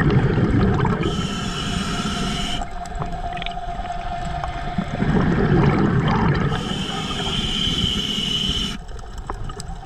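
A diver's breathing bubbles gurgle and hiss.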